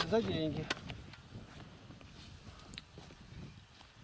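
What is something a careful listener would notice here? A shovel scrapes and thuds into soil.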